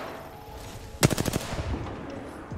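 A rapid burst of gunfire rings out close by.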